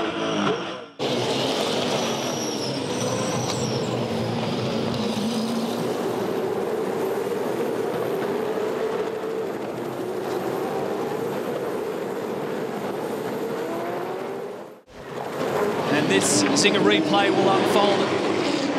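Race car engines roar past on a track.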